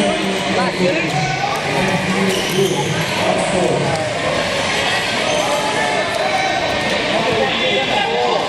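Many people talk and shout in a large echoing hall.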